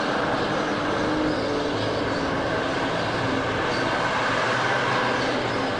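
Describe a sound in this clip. A loaded van drives by on the road.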